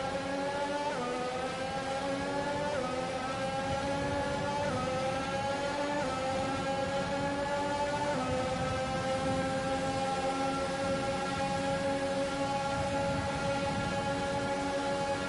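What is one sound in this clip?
A racing car engine whines loudly, climbing in pitch and dropping sharply with each gear change.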